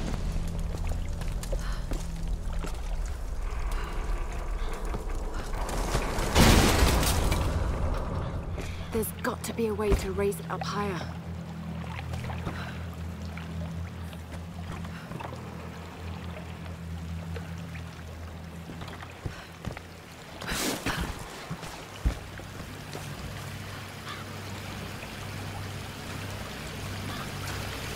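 Footsteps crunch over stone and wooden planks.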